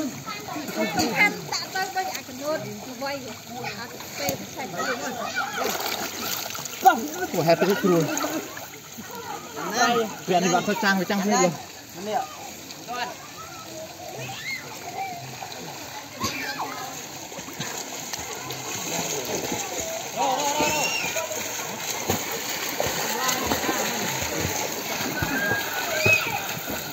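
Water splashes as swimmers kick and paddle in a pool.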